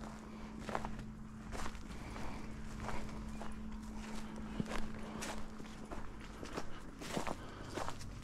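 Footsteps crunch over dry ground.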